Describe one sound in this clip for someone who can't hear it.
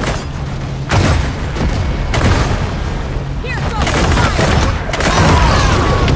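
A loud explosion booms.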